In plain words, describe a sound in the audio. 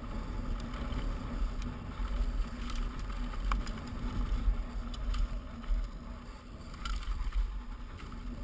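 A mountain bike rattles and clatters as it jolts over rocks.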